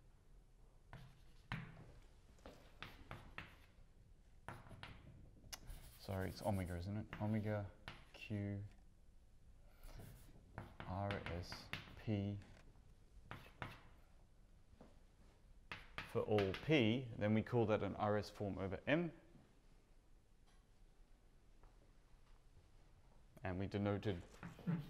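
A man speaks calmly, pausing often.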